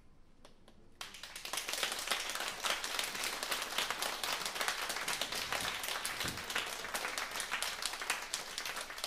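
Cymbals clatter quickly on a drum kit.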